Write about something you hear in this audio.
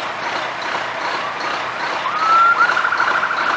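A fire truck siren rises and whoops.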